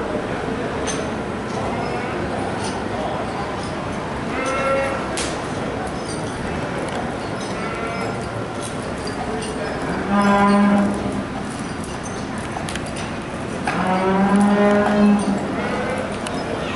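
People chatter faintly in the background.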